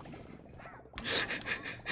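A game creature bursts with a loud splattering noise.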